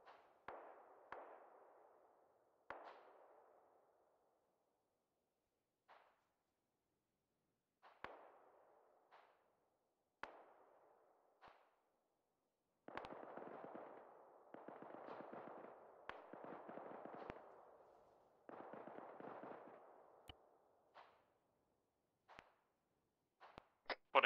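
Gunshots crack and echo in the distance.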